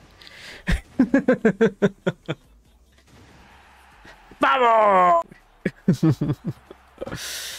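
A young man speaks and laughs with animation close to a microphone.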